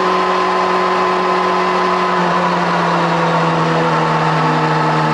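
Wind rushes past a fast-moving car.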